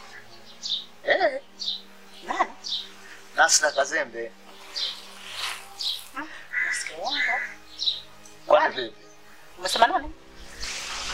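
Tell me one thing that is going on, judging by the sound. A middle-aged woman speaks in a pained, complaining voice close by.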